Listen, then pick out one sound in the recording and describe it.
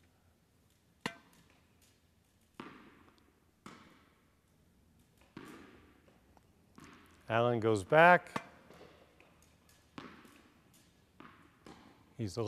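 A tennis ball is struck by rackets with sharp pops.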